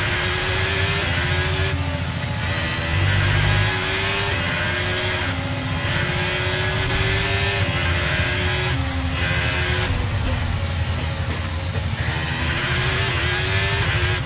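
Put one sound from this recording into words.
A racing car engine screams loudly, rising and dropping in pitch as it shifts gears.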